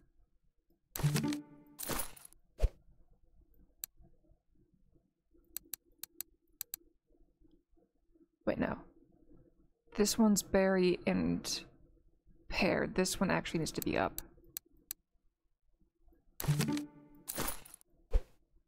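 Bright game chimes and sparkling effects ring out in short bursts.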